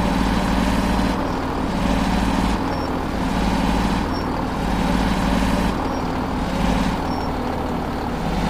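A bus engine hums steadily as it drives along.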